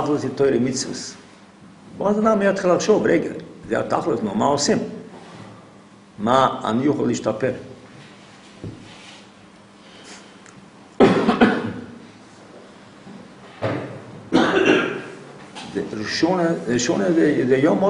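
An elderly man speaks calmly and slowly close by, with pauses.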